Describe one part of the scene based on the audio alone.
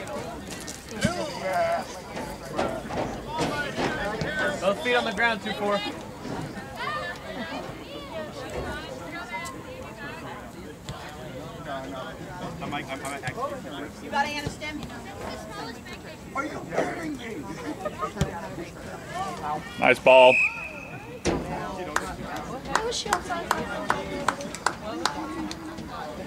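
Players call out to each other across the field.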